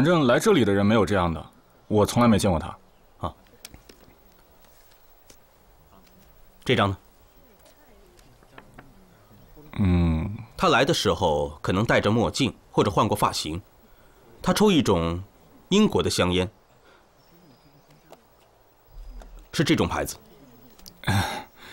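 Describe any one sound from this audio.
A young man speaks politely, close by.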